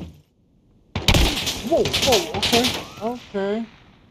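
A stun grenade goes off with a loud bang and ringing.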